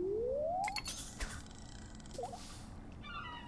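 A bobber plops into water.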